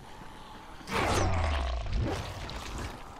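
A weapon strikes flesh with heavy thuds.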